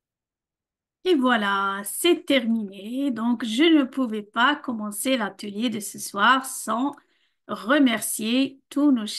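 An older woman speaks warmly over an online call.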